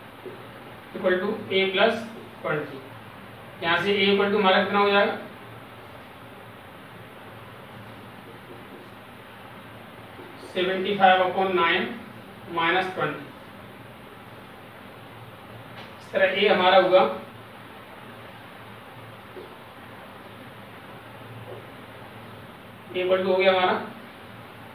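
A man explains calmly in short phrases, close by.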